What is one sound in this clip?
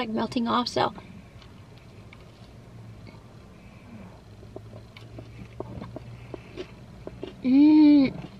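A young woman chews food with soft, wet clicks.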